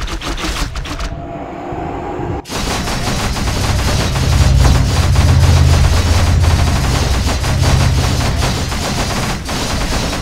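Magic spells crackle and burst.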